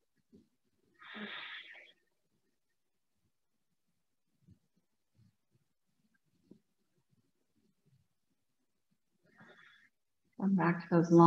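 A woman speaks softly and calmly, close to a microphone.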